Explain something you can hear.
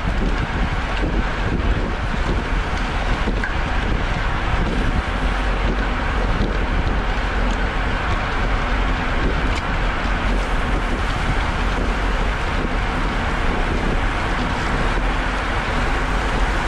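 Bicycle chains and gears whir and tick.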